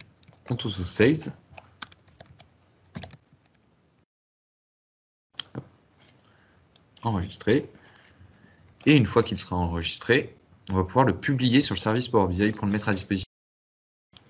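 A man talks calmly through a microphone, heard as if over an online call.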